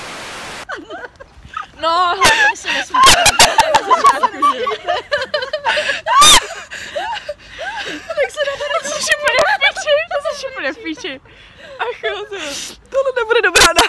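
Young women laugh and chatter loudly close by.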